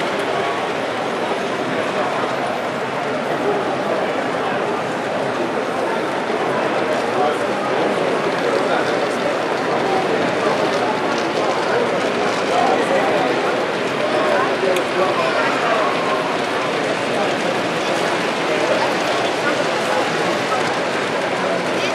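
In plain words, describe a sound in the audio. A crowd of people chatters all around in a busy indoor hall.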